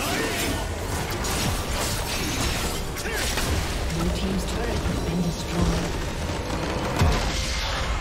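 Game spell effects crackle and clash in a fight.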